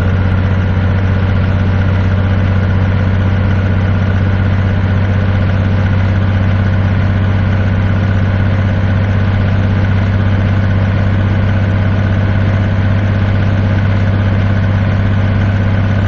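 A truck engine drones steadily at a low pitch.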